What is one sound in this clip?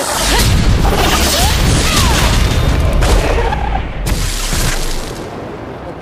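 Flames roar and whoosh in loud bursts.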